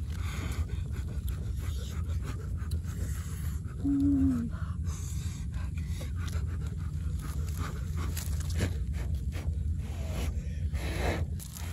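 Leaves rustle as a young man handles greens.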